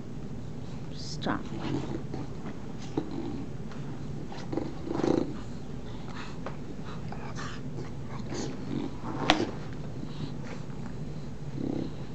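Dogs growl and snort as they play-fight.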